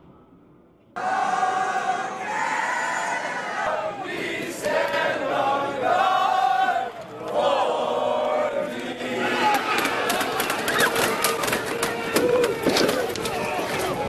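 A large crowd shouts and chants outdoors.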